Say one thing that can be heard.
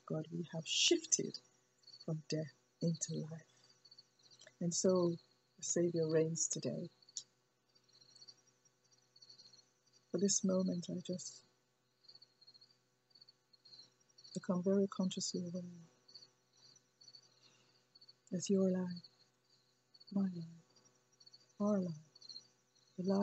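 A woman speaks calmly and close up, in short phrases with pauses.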